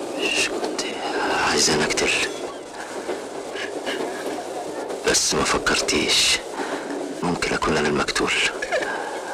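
A young man speaks weakly and breathlessly close by.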